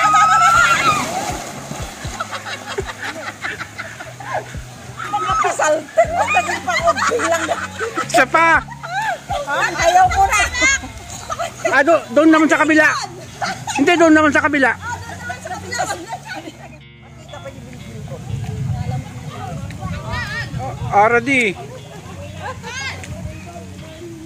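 Women shout and laugh with excitement nearby.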